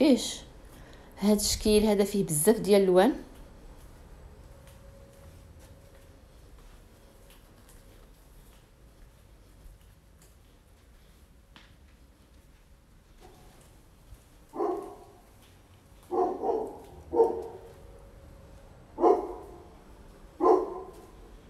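Small glass bottles clink softly as a hand moves them.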